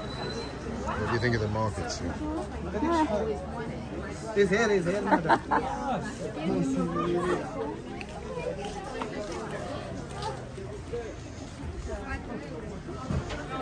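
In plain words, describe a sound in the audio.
Many voices murmur all around in a busy crowd.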